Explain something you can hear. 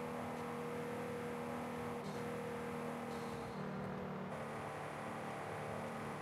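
A sports car engine hums steadily at high speed.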